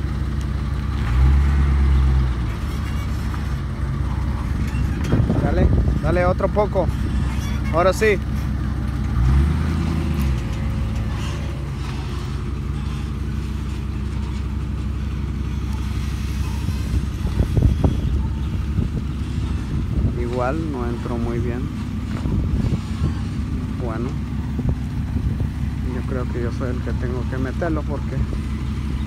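A pickup truck engine idles with a steady low rumble.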